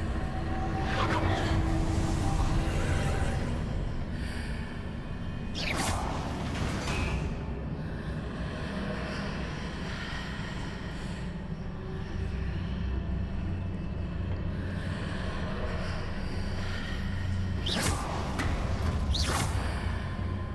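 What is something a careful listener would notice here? A magic spell whooshes and crackles.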